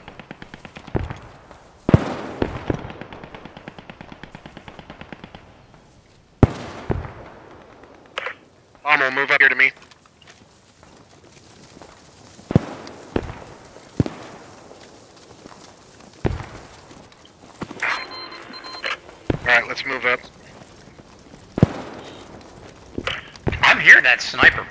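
Rifle shots crack out one at a time, with a short echo after each.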